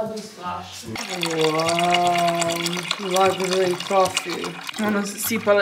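Water pours from a plastic bottle into a coffee maker.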